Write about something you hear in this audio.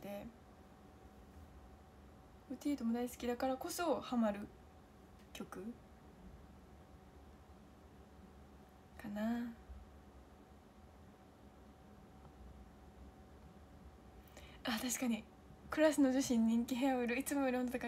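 A young woman talks close to a microphone, in bursts with pauses.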